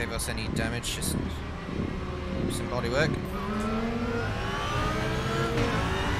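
A racing car engine roars and climbs in pitch through the gears.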